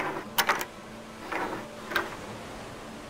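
A lock clicks sharply as it is picked.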